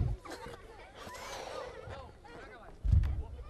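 A balloon squeaks as it is rubbed.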